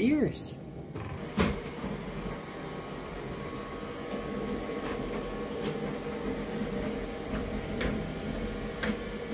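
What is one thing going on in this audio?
A robot vacuum hums steadily in the distance.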